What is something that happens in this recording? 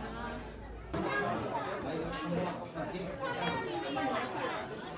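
A crowd of people chatters in a busy room.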